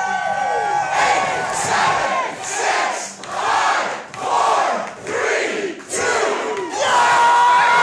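A large crowd of men and women chants loudly in rhythmic bursts.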